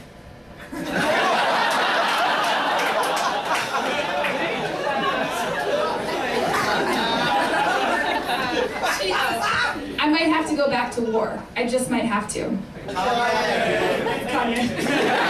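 A young woman speaks with animation through a microphone in a hall.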